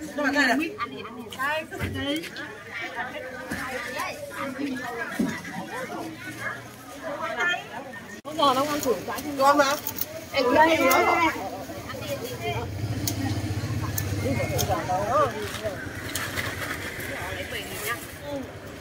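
Women talk close by with animation.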